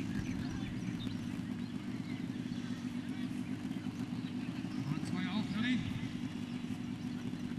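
A crowd of people chatters and calls out in the distance outdoors.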